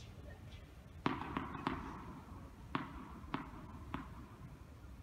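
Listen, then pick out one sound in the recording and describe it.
A tennis ball bounces on a hard court several times.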